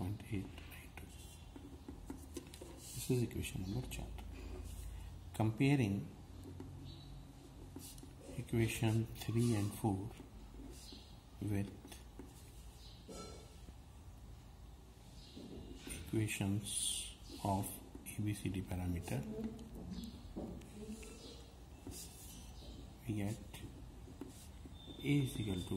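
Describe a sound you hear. A marker scratches across paper.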